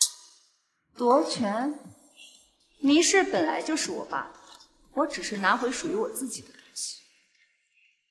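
A young woman speaks calmly and firmly.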